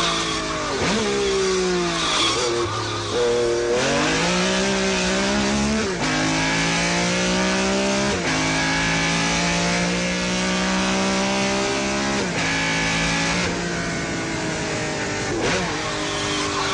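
A loud racing engine revs high and shifts through gears, its pitch climbing and dropping again and again.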